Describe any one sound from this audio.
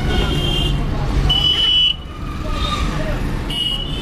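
A motorcycle engine putters past close by.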